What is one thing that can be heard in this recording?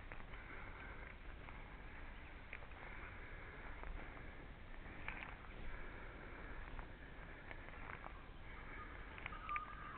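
Small footsteps crunch softly on dry leaf litter.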